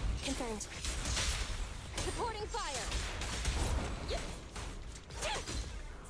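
Energy blasts whoosh and crackle in bursts.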